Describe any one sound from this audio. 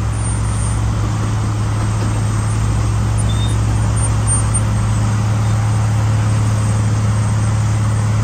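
A diesel engine of a wheel loader rumbles steadily nearby.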